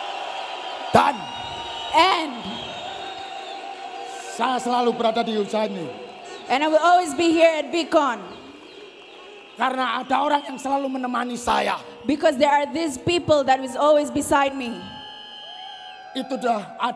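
A man speaks with animation into a microphone over loudspeakers.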